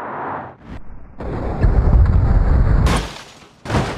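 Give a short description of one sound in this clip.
A car crashes with a loud crunch.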